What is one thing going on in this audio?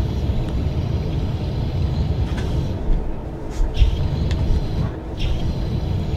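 A deep mechanical rumble drones steadily.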